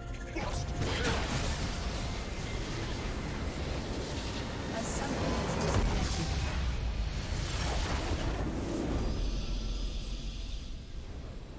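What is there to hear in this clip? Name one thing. Game spell effects crackle and boom during a fight.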